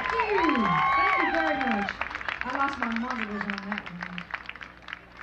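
A woman sings into a microphone through loudspeakers outdoors.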